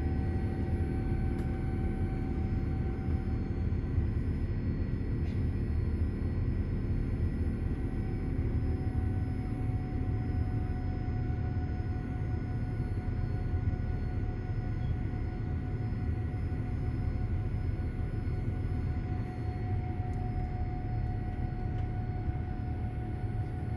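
Jet engines roar steadily inside an aircraft cabin with a low, constant rumble.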